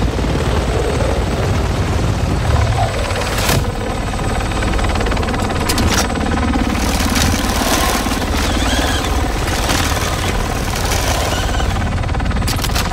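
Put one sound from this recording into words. A helicopter's rotors thump and roar loudly overhead.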